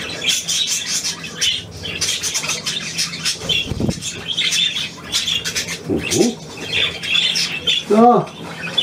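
Budgerigars chatter and warble.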